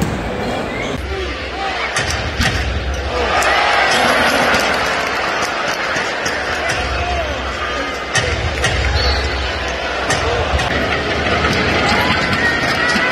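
A large arena crowd roars and cheers, echoing.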